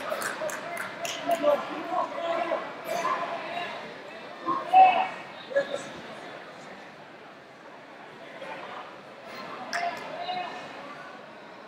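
A man shouts instructions.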